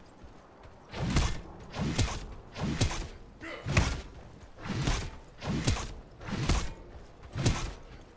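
A spear swings through the air with a whooshing strike, over and over in a quick rhythm.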